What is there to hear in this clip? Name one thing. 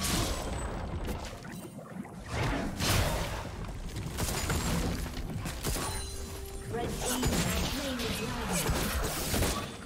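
Magic spells burst and crackle in a fantasy battle.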